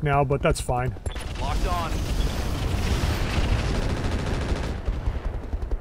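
Laser weapons fire in a rapid, crackling burst.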